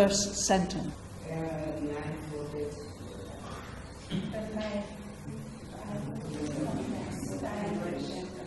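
An elderly woman reads aloud calmly and slowly, close to a microphone.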